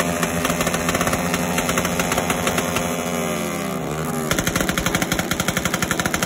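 A motorcycle exhaust pops and crackles.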